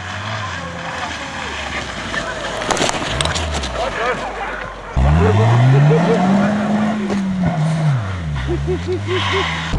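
Tyres crunch and slide on snow.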